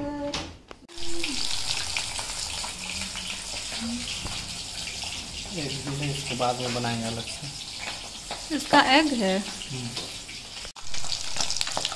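Oil sizzles steadily in a frying pan.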